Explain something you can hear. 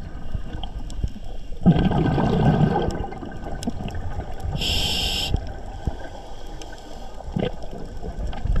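Water rumbles and hisses softly, heard muffled underwater.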